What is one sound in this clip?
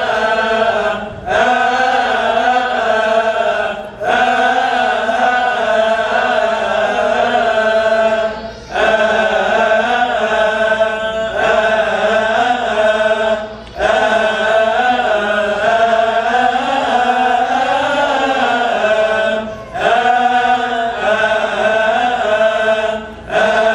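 A choir of men chants together in unison, in a reverberant hall.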